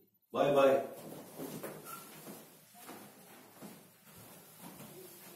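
Footsteps shuffle on a carpeted floor.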